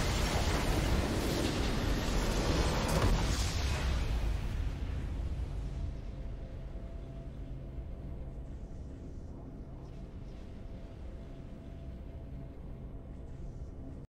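A video game's victory fanfare plays and fades.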